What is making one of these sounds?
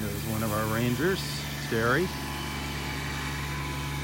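A small utility vehicle's engine hums as it drives along the sand.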